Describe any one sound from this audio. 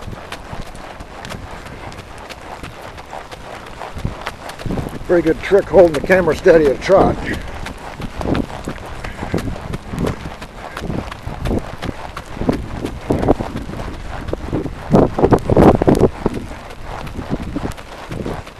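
A horse's hooves thud steadily on a dirt track.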